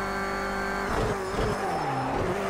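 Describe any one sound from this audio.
A racing car engine drops in pitch as the car brakes hard.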